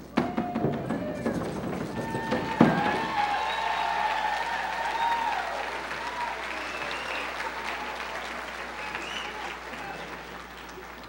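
A group of men and women sing together in a loud chorus.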